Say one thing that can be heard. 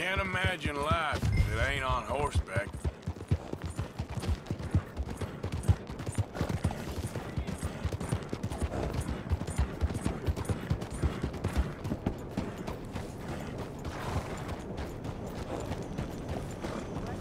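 A horse's hooves clop steadily on packed dirt.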